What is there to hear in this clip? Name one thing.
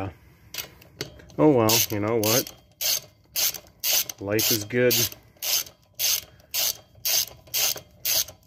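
A ratchet wrench clicks rapidly in short repeated bursts.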